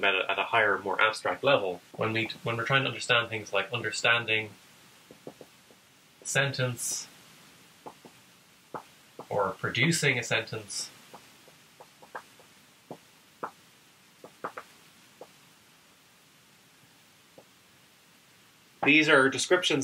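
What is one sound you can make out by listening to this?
A young man speaks calmly and clearly to a nearby microphone.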